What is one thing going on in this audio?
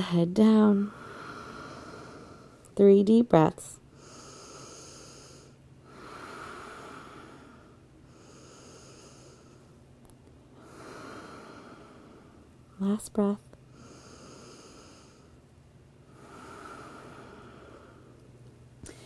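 A young woman breathes in and out slowly and deeply.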